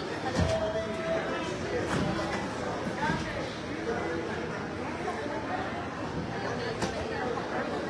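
Cardboard boxes thud onto a truck's floor.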